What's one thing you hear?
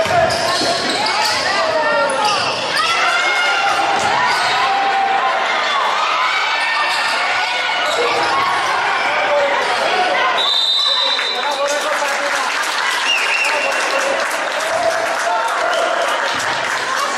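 A small crowd murmurs and calls out in the background.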